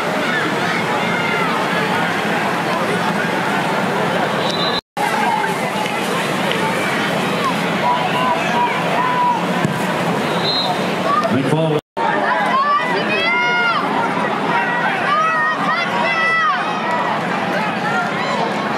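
A large crowd cheers and murmurs in a stadium.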